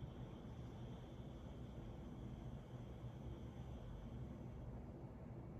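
A young woman breathes slowly and deeply.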